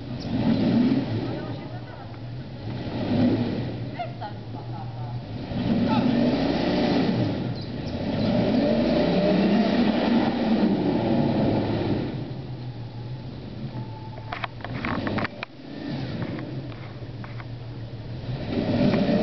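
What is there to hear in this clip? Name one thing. Tyres churn and splash through deep mud.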